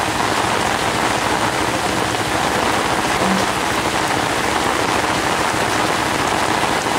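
Footsteps splash through shallow floodwater.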